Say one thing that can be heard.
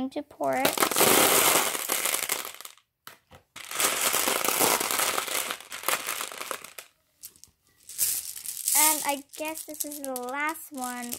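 Small glass beads clatter and rattle as a hand stirs through them.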